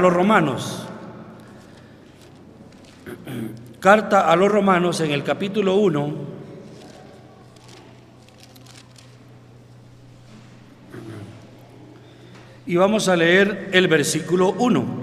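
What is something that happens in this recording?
An elderly man speaks steadily into a microphone, echoing in a large hall, with long pauses.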